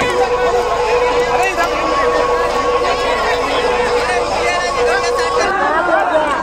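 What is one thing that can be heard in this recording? A crowd of men shouts and argues loudly outdoors.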